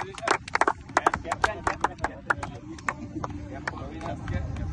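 A group of men claps hands rhythmically outdoors.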